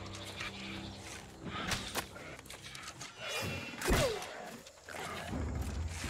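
A bowstring twangs as arrows fly.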